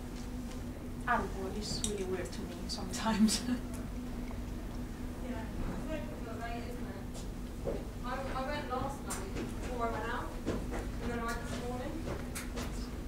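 A young woman speaks casually nearby, with pauses.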